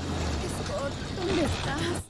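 A young woman cries out in fear.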